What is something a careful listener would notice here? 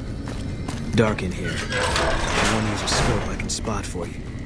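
A heavy metal door grinds open.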